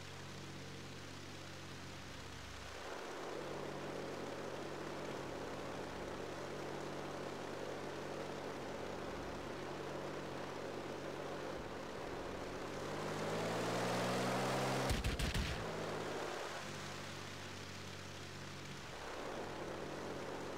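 A propeller plane's engine drones steadily and swells louder for a while.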